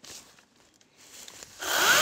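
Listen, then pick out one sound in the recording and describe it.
A battery chainsaw whirs as it speeds up.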